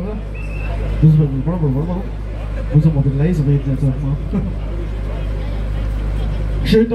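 A man speaks loudly through a microphone and loudspeakers, outdoors.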